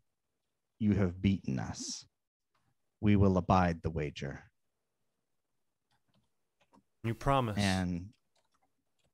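A man talks with animation through a microphone on an online call, in short bursts.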